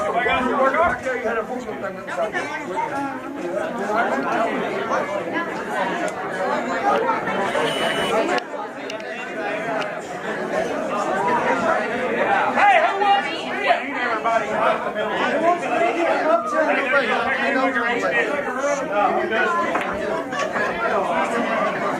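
A crowd of young men and women chatter loudly all around, indoors.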